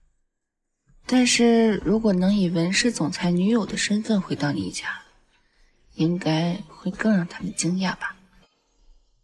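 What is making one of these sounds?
A young woman speaks softly and calmly up close.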